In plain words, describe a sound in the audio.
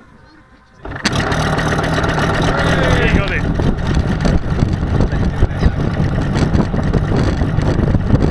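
A model plane's engine starts up and roars loudly and steadily nearby.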